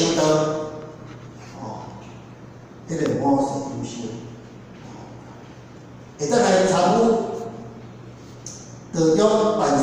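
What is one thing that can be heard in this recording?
An elderly man speaks calmly into a microphone through a loudspeaker in an echoing room.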